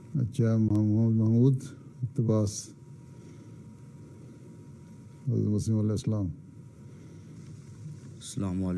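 An elderly man speaks slowly and calmly into a close microphone, with long pauses.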